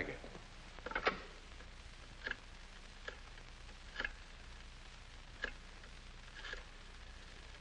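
A telephone receiver clicks and rattles.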